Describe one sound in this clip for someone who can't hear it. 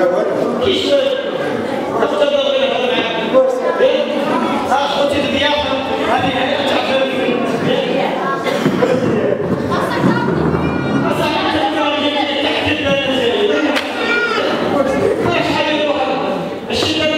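A man speaks loudly with animation into a microphone through loudspeakers in an echoing hall.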